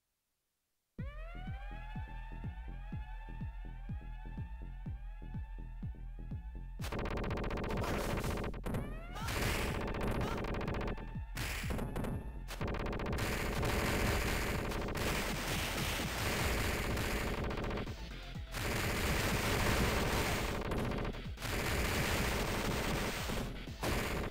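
Fast electronic game music plays.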